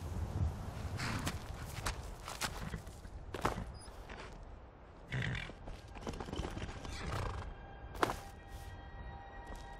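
Horse hooves clop on rocky ground.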